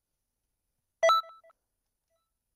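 A bright menu chime rings once.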